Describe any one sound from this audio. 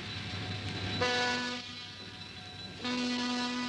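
A train horn blows loudly twice.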